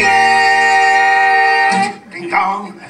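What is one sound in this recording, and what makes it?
An acoustic guitar strums along with singing.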